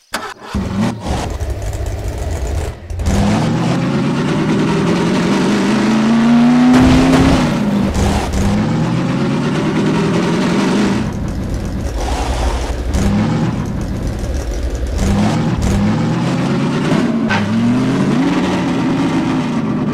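Tyres crunch and skid over gravel.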